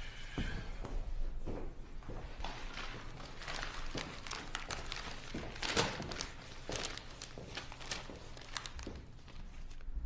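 Paper rustles as a newspaper is opened and its pages are handled.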